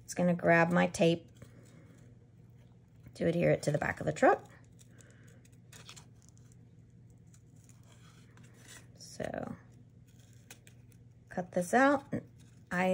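Small scissors snip through thin card.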